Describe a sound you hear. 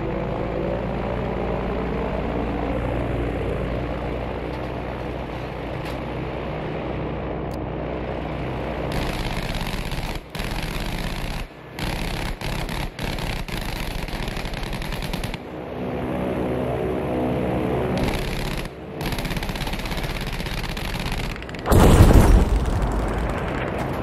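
Propeller plane engines drone steadily.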